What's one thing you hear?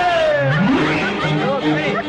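A young woman laughs merrily.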